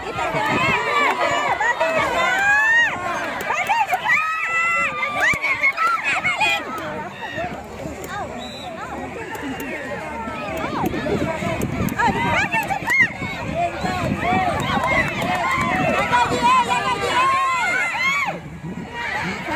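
A crowd of young children shout and cheer excitedly close by.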